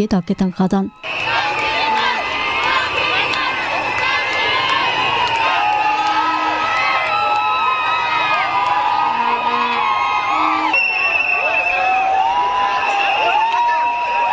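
A large crowd chants and sings loudly outdoors.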